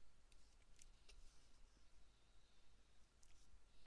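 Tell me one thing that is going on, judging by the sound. A small figurine is set down on a hard surface with a soft tap.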